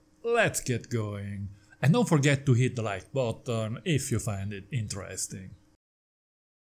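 A middle-aged man talks animatedly, close to a microphone.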